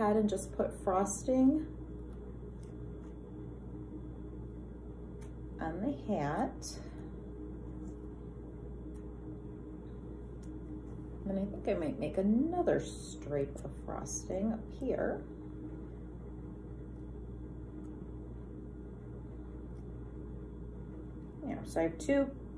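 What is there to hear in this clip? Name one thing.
A woman talks calmly and close by, with pauses.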